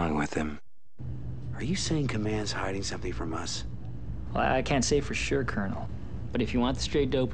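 A man answers in a low, earnest voice.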